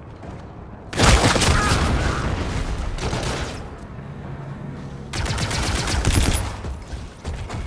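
Rapid gunfire rattles loudly in bursts.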